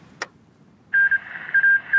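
A short electronic chime sounds twice.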